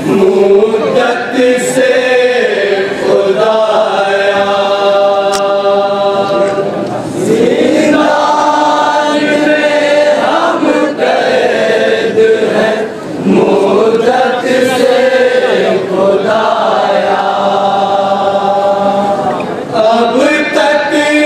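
A group of men chant loudly in unison through a microphone, in a mournful melody.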